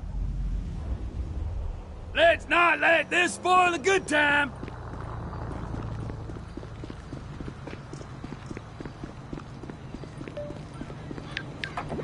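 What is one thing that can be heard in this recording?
Footsteps tap on pavement at a steady walking pace.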